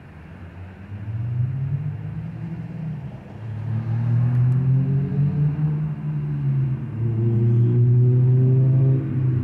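A car engine idles and hums nearby.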